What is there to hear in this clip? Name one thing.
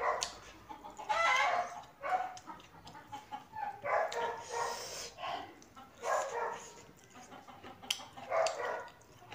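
A woman chews food noisily up close.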